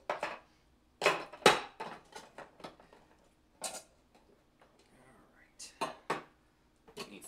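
Items clatter and knock on a counter.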